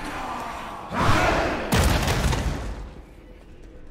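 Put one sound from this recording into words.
Magic spells whoosh and burst loudly.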